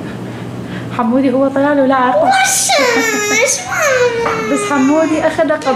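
A young girl talks cheerfully up close.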